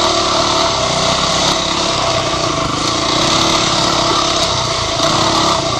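A dirt bike engine revs loudly close by.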